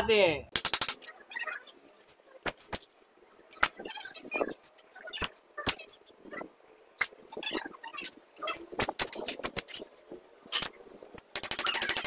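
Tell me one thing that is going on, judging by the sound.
Wooden sticks knock and clatter against each other.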